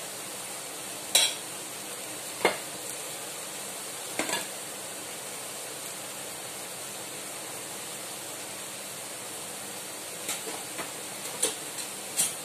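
Spices sizzle softly in a hot pan.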